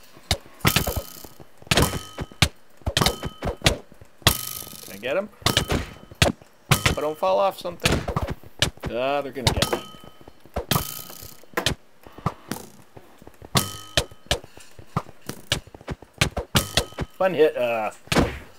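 Sharp game sword hits land in quick bursts.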